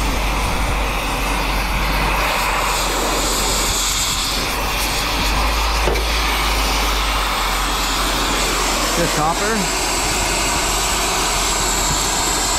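A cutting torch hisses steadily against metal.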